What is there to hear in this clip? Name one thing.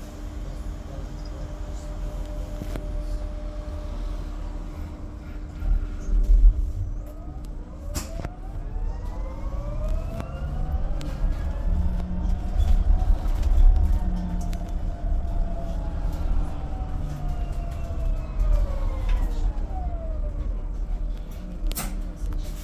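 A bus engine rumbles low and steadily from inside the moving bus.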